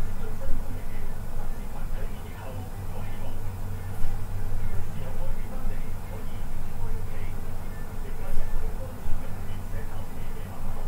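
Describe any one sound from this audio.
A middle-aged man talks through a computer microphone.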